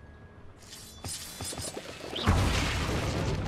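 Wooden barrels smash and splinter.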